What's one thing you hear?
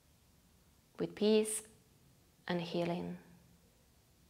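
A young woman speaks softly and calmly close by.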